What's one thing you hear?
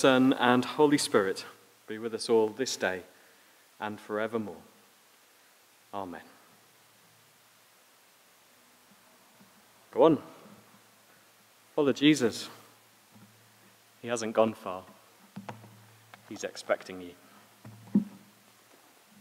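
A man speaks slowly and deliberately into a microphone, with pauses, in a room with some echo.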